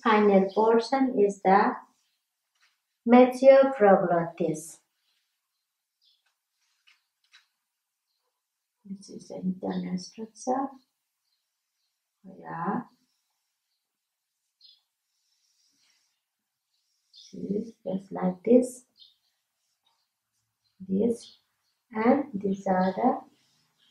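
A woman speaks calmly and clearly nearby, explaining in pauses.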